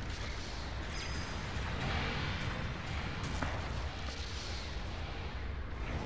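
A warning alarm beeps.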